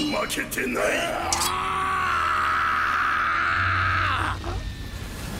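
A young man shouts loudly.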